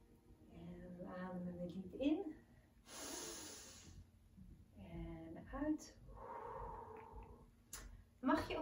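A young woman speaks calmly and softly close by.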